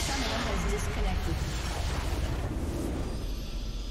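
A building explodes with a deep rumble in a video game.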